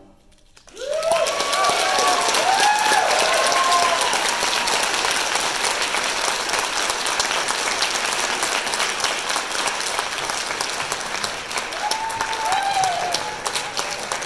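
People in an audience cheer and whoop.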